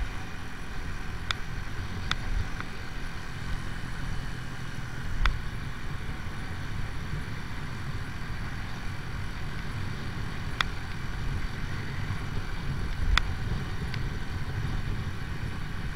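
Wind rumbles against a moving rider.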